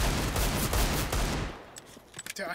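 A pistol fires a burst of rapid shots.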